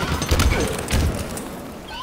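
A loud video game explosion booms.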